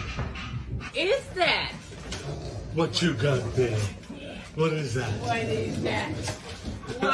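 A dog howls in long, wavering, rising and falling notes.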